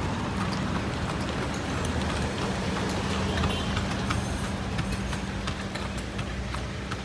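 Horse hooves clop steadily on the road.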